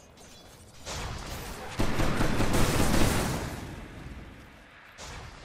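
Spell blasts and clashing weapons burst out in a game fight.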